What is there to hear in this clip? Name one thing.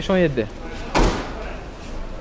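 A car's tailgate slams shut with a thud.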